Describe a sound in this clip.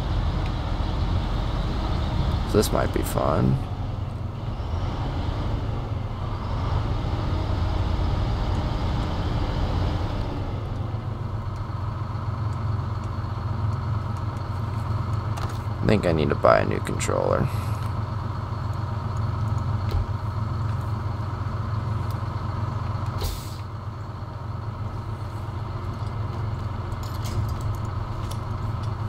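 A heavy diesel truck engine rumbles at low revs.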